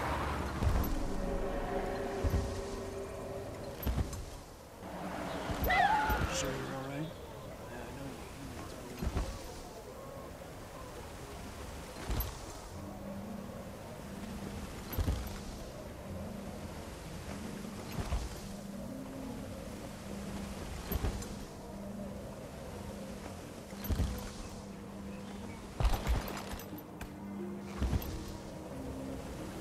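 Large wings flap with soft, regular whooshing thumps.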